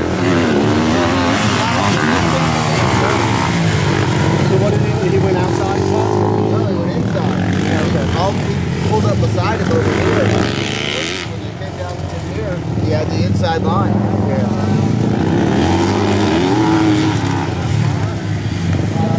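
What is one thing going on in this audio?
Dirt bike engines rev and whine loudly, rising and falling in pitch.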